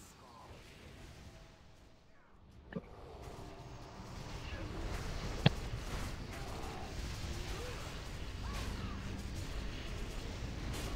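Magic spells whoosh and rumble in a busy fantasy battle.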